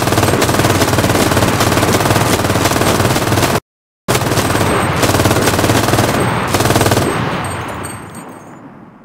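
A machine gun fires in long, loud bursts.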